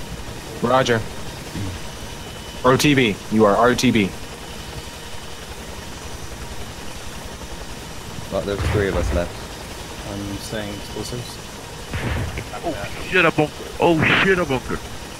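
A helicopter's rotor thumps and drones steadily.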